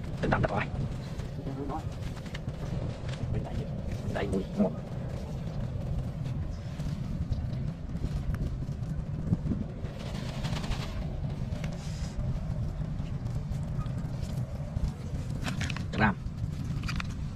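A plastic bag rustles.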